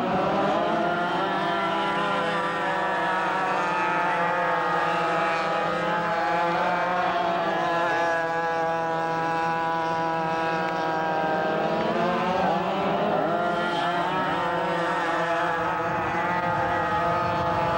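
Several go-kart engines buzz and whine as they race around a track.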